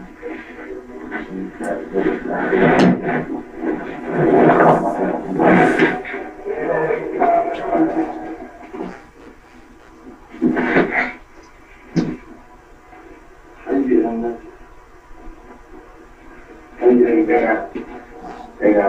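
A man talks calmly in a small room, heard from a distance.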